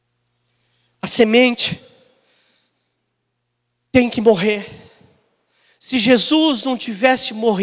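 A man speaks with animation through a microphone, in bursts with pauses.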